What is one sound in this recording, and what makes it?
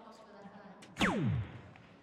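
A dart thuds into an electronic dartboard.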